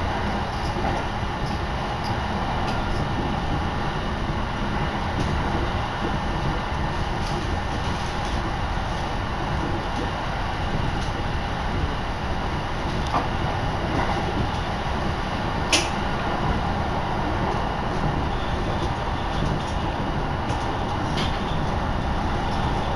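A vehicle rumbles along at speed.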